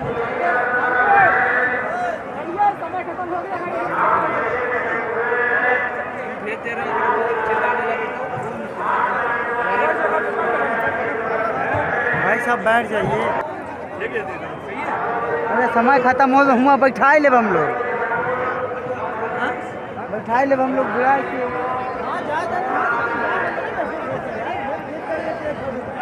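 A large crowd of men and women talk and call out nearby, outdoors.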